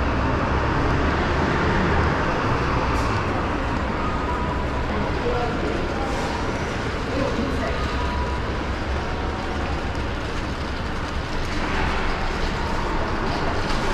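Footsteps tap on a hard tiled floor in an echoing hallway.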